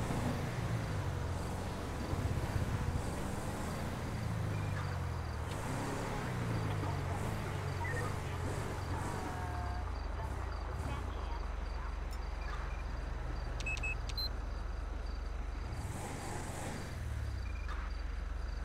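A car engine hums and revs as it drives along, then idles.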